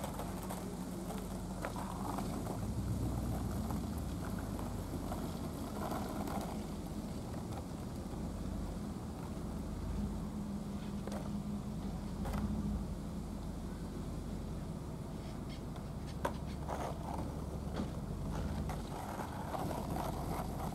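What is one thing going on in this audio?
Skateboard wheels roll and rumble on asphalt.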